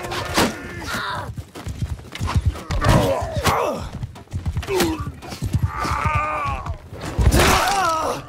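Blades clash and thud in a close fight.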